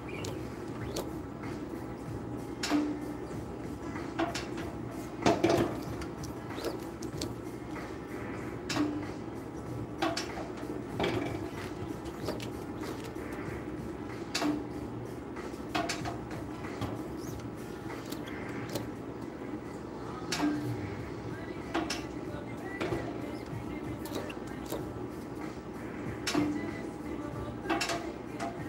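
A printing frame knocks and clacks as it is lowered and lifted.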